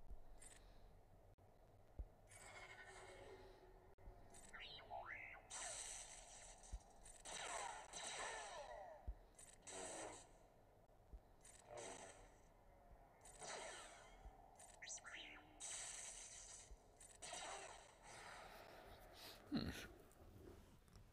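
Lightsabers hum and clash in short bursts.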